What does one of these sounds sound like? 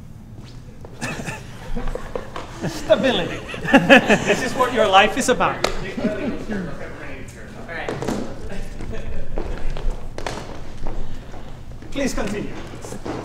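An audience laughs and claps in a hall.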